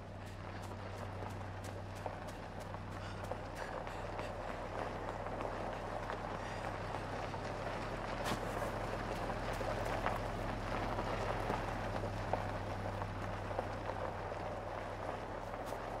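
A vehicle engine hums in the distance.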